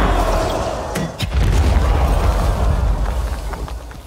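Heavy blows crash into the ground.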